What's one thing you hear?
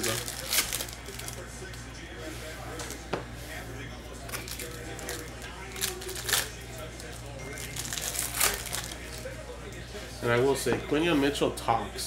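Plastic wrapping crinkles as a pack is torn open.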